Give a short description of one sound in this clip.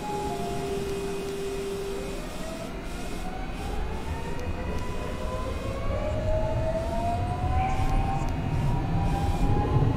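A train rumbles along the tracks in a tunnel, growing louder.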